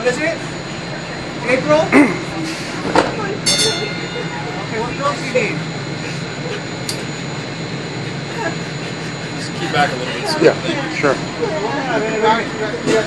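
Men talk nearby outdoors in short bursts.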